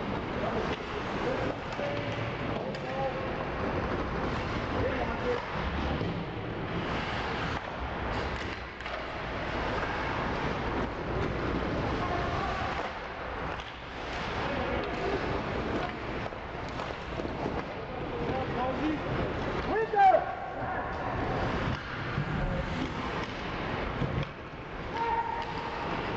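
Ice skates scrape and glide across the ice in a large echoing rink.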